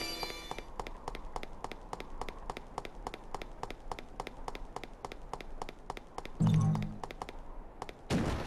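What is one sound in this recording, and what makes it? Quick footsteps patter steadily on hard stone.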